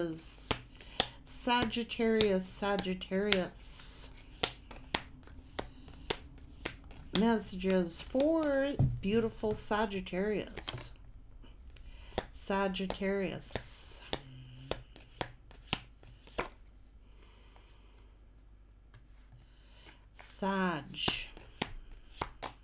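A woman speaks calmly and closely into a microphone, in short bursts.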